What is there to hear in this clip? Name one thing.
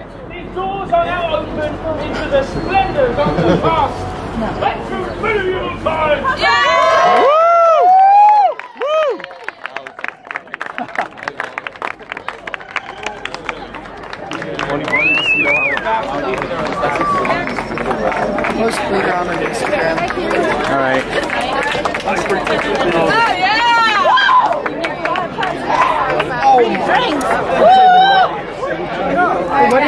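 A crowd of young men and women chatters and calls out nearby outdoors.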